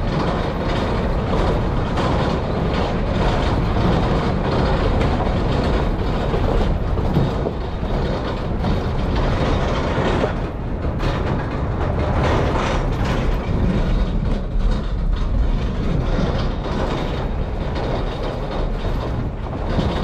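Tyres crunch and rattle over a bumpy dirt road.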